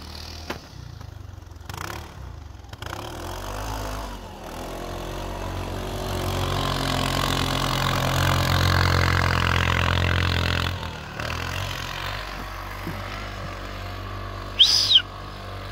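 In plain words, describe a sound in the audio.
An off-road buggy engine revs loudly while driving through snow.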